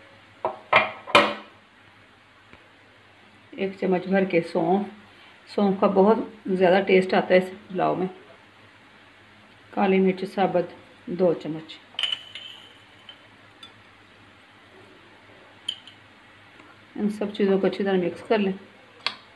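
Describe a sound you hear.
Dry seeds patter softly from a spoon into a bowl.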